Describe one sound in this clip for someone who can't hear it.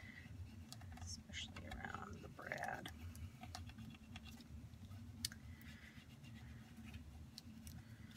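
A bone folder scrapes and scores across paper.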